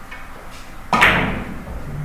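A cue strikes a billiard ball with a sharp knock.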